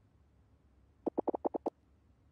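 Soft rapid blips tick as game dialogue text types out.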